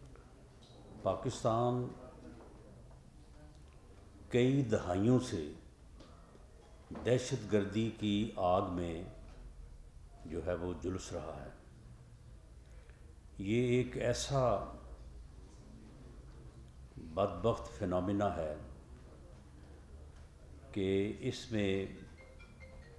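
A middle-aged man speaks calmly into microphones, in short bursts with pauses.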